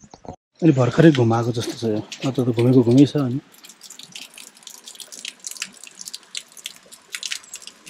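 Water trickles from a spout and splashes onto stone below.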